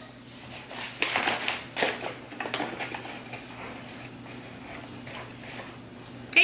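Flour rustles as it is scooped by hand.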